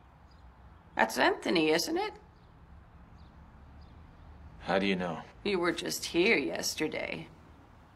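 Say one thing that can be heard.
An elderly woman speaks quietly.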